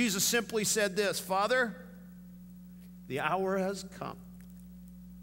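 A middle-aged man speaks through a microphone in a large echoing hall, with pauses.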